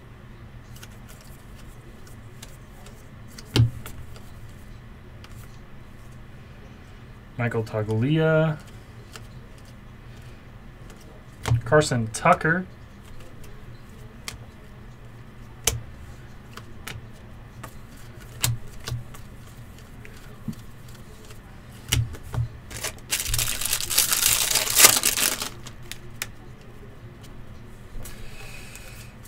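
Trading cards flick and slide against each other.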